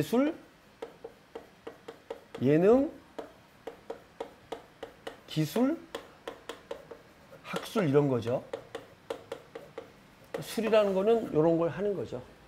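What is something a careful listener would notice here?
Chalk taps and scrapes on a board in quick, regular knocks.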